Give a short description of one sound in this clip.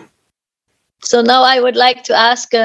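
A middle-aged woman speaks calmly, heard through an online call.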